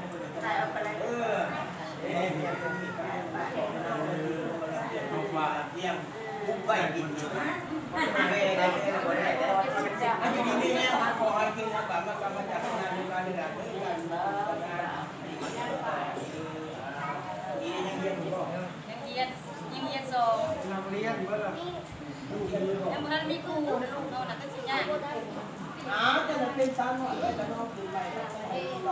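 An elderly man chants a blessing close by.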